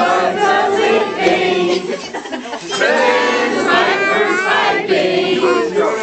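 A group of people sing loudly together close by.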